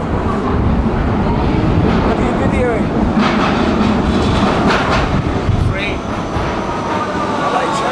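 A metro train rumbles into an echoing underground station.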